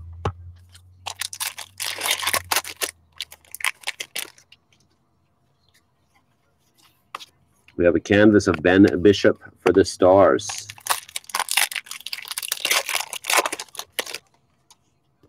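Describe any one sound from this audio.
Trading cards rustle and flick as a hand shuffles through them.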